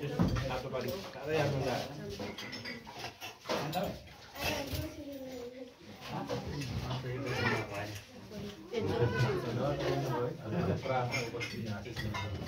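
Spoons clink against plates.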